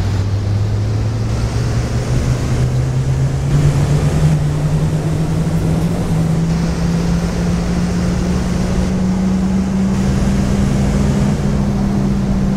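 A bus engine hums and slowly rises in pitch as it speeds up.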